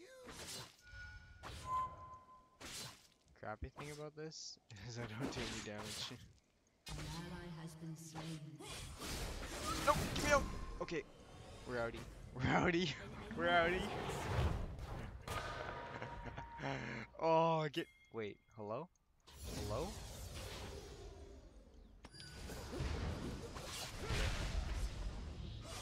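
Electronic game sound effects whoosh, zap and clash in quick bursts.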